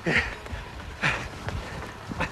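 Footsteps splash on a wet pavement.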